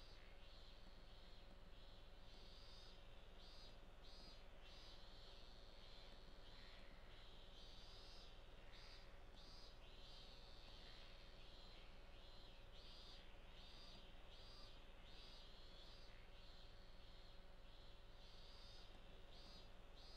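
A river flows steadily.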